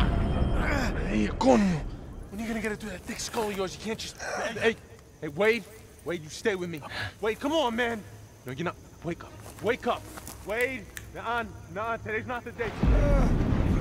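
A young man speaks urgently and breathlessly, close by.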